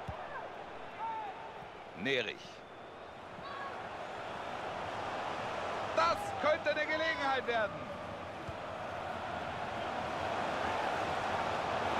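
A stadium crowd cheers in a steady roar that slowly swells.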